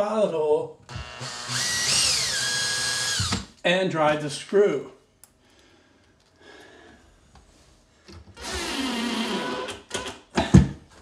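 A cordless drill whirs in short bursts.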